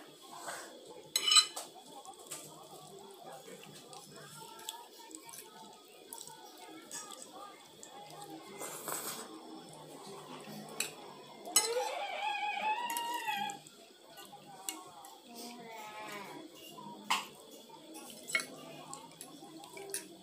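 Forks clink and scrape against plates.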